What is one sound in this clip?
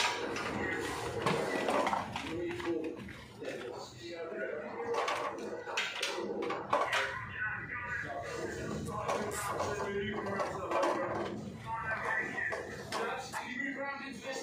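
Cables rustle and click against a metal box.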